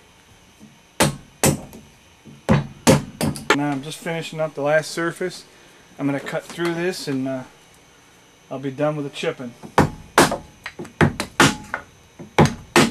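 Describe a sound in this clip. A mallet knocks sharply on a wooden chisel.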